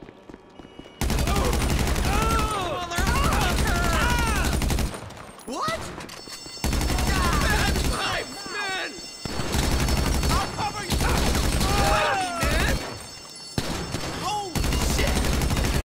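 Automatic gunfire rattles in rapid, loud bursts.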